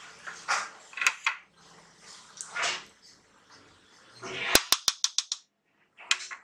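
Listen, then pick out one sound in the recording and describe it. A spoon clinks against a pot.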